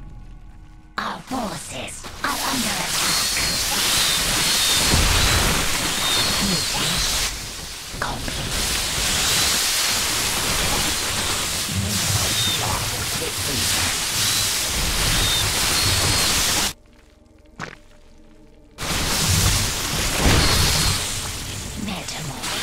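Swarms of creatures screech and clash in a noisy battle.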